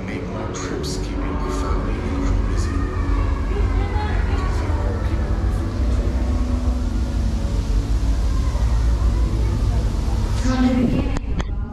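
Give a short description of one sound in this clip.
Voices of visitors murmur and echo through a large hall.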